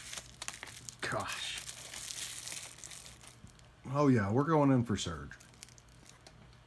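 Plastic bubble wrap crinkles in someone's hands.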